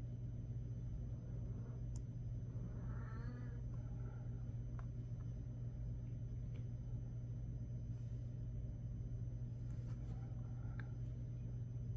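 Small metal pieces tap and click softly as hands press them together.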